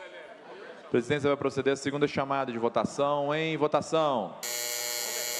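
A young man speaks clearly into a microphone.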